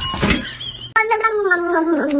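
A cat meows loudly and drawn out.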